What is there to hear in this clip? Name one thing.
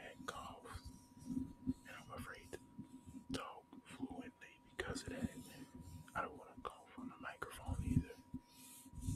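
A man speaks calmly and close by, muffled by a face mask.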